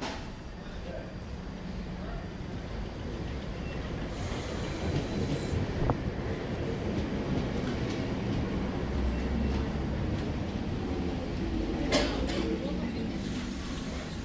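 A train pulls in and rumbles to a stop.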